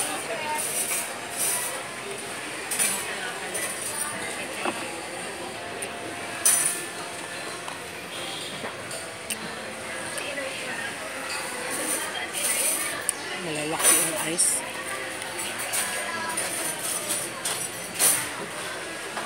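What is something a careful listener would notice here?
A metal spoon clinks and scrapes against a plastic bowl.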